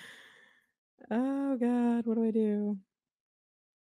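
A young woman sings a long drawn-out note into a microphone.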